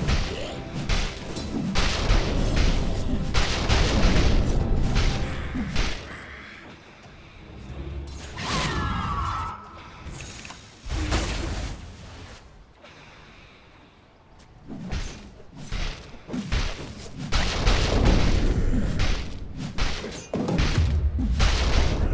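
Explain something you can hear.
Fast fantasy battle sound effects clash and crackle.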